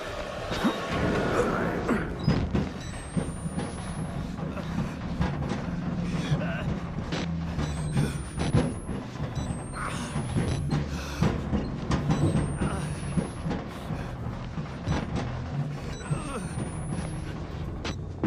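Hands scrape and shuffle while crawling through a narrow space.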